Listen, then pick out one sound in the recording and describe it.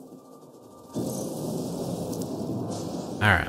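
A spaceship engine roars steadily.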